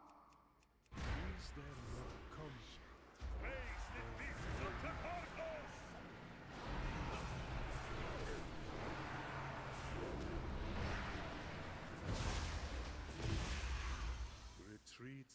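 Weapon blows and magic blasts clash in a fast fight.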